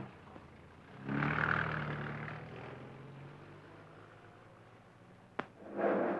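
A car engine starts and drives away.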